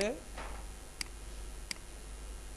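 A computer mouse clicks twice.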